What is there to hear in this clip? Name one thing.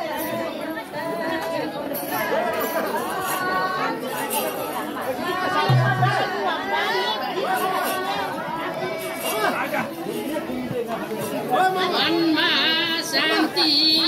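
A group of women sing together nearby.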